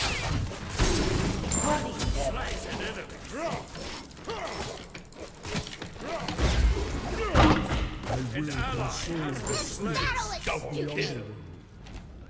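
Game sound effects of fighting clash and burst.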